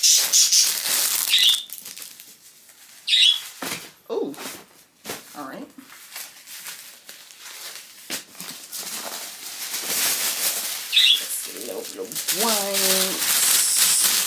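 Plastic wrapping and tissue paper crinkle and rustle in someone's hands.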